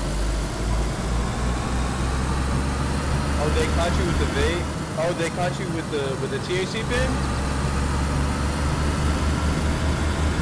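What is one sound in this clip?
A car engine hums steadily as a car drives along a road.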